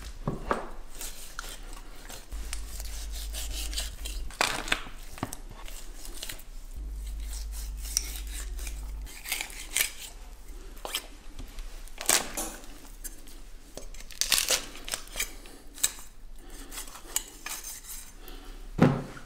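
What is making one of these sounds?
A knife slices through raw meat with soft wet sounds.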